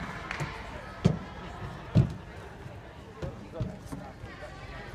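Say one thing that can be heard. Feet thud on a wooden balance beam in a large echoing hall.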